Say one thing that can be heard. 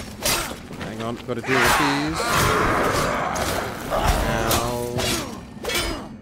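A monstrous creature growls and roars.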